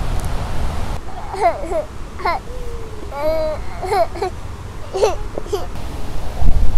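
A woman speaks playfully to a small child close by.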